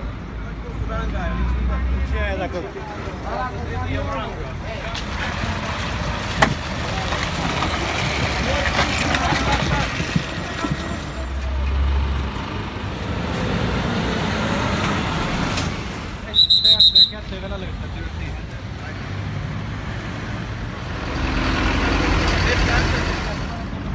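Traffic rumbles past steadily on a busy road.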